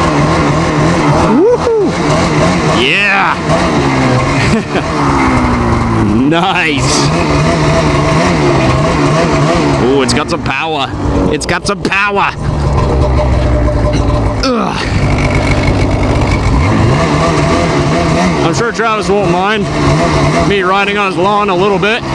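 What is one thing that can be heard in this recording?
A two-stroke snowmobile engine idles loudly and revs up and down in sharp bursts.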